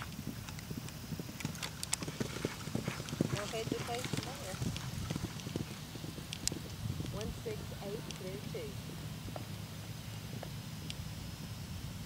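Hooves thud on grass as a horse canters.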